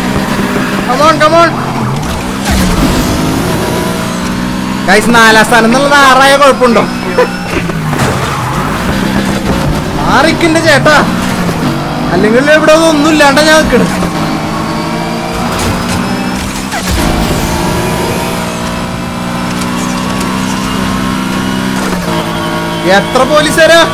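Tyres screech in sharp bursts as a car drifts through corners.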